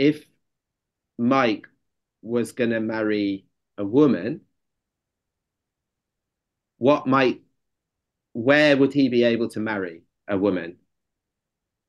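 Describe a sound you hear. A man speaks calmly through an online call, in short phrases with pauses.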